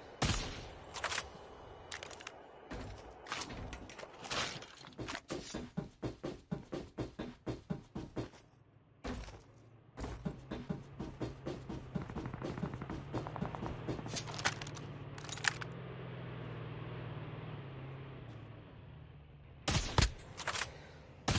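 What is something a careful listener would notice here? Rifle shots crack sharply, a few at a time.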